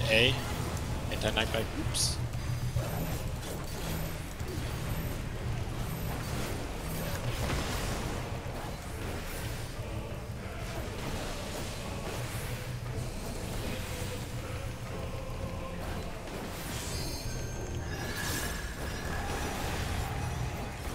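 Game background music plays steadily.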